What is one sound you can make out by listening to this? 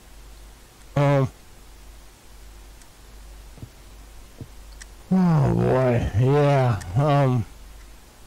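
A middle-aged man talks close to a microphone, with animation.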